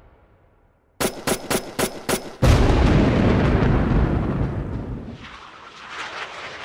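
Explosions boom and crackle loudly.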